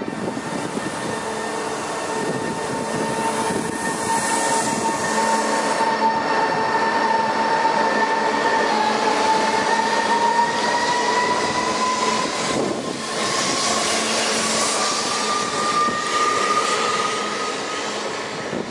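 A train rumbles and hums as it pulls slowly away and gathers speed.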